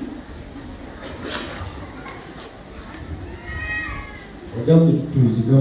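A crowd of people murmurs in a large echoing room.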